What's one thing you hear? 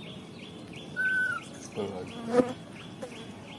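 A baby macaque squeals in short shrill cries.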